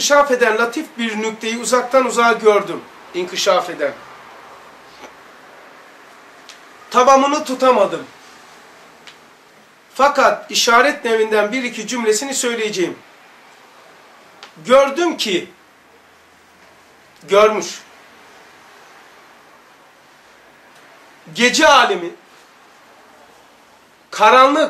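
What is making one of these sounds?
An elderly man speaks calmly in bursts with pauses, close by.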